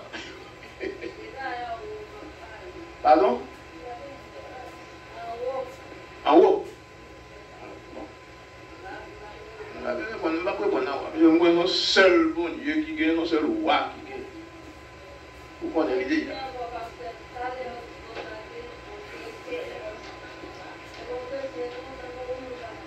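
An elderly man preaches with animation through a microphone, heard over a loudspeaker.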